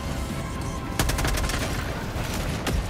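Gunfire bursts rapidly and loudly.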